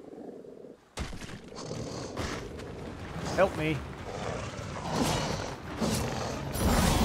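Monsters roar and growl loudly.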